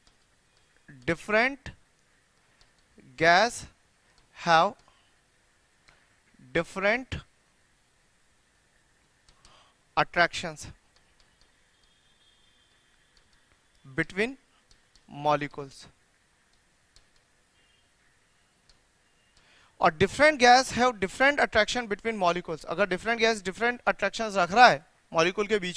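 A man speaks calmly and clearly into a close microphone, in short phrases and then at length.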